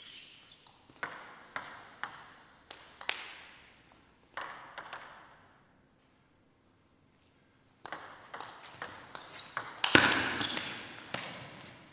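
A table tennis ball clicks back and forth on bats and a table in an echoing hall.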